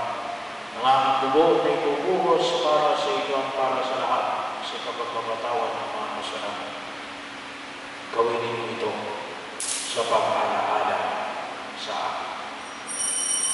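A man recites prayers over a loudspeaker.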